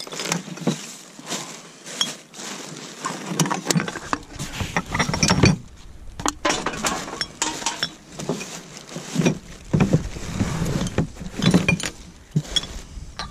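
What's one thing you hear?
Glass bottles clink against each other.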